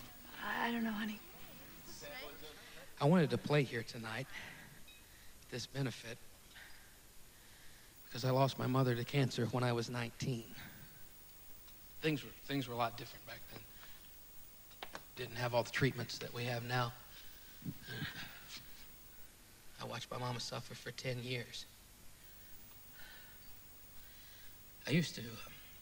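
A middle-aged man speaks with animation into a microphone over loudspeakers.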